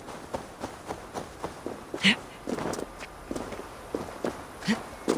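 Footsteps crunch on grass and rock at a quick, even pace.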